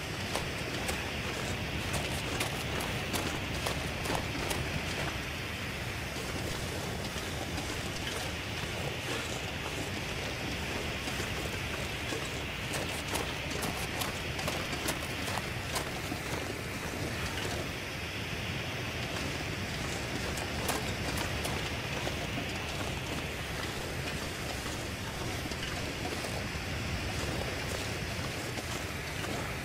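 A road flare hisses and crackles steadily as it burns.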